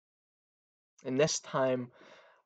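A young man speaks briefly and calmly, close to a microphone.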